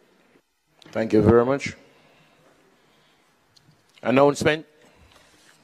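A man speaks calmly and formally into a microphone.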